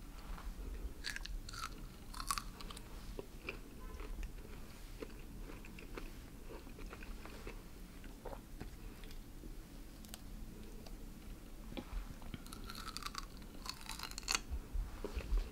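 A man chews and crunches pineapple, close up.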